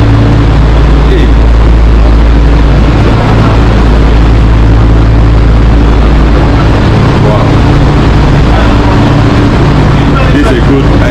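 A train carriage rumbles and hums steadily as it runs along the track.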